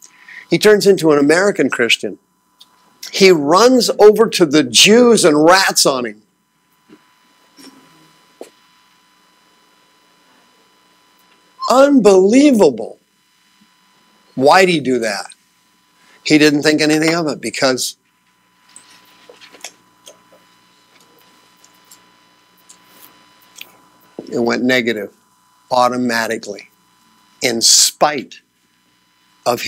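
A man speaks in bursts with long pauses, through a microphone.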